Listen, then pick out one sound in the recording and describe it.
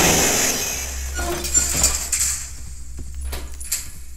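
A metal locker door clanks open.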